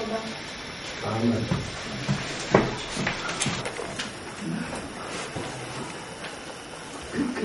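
Acoustic guitars are plucked softly.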